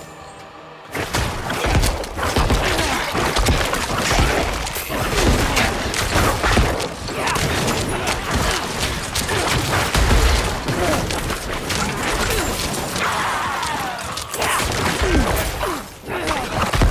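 Magic blasts and crackles in a fierce fight.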